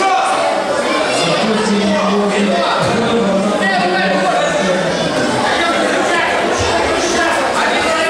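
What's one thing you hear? A crowd of spectators chatters loudly in a large echoing hall.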